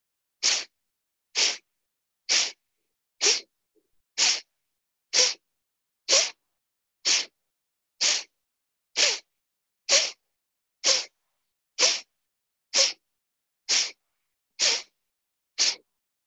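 A man breathes out sharply through the nose in a steady rhythm, heard over an online call.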